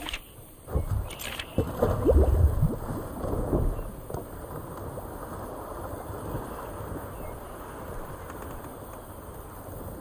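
Water laps and swishes against a raft moving along.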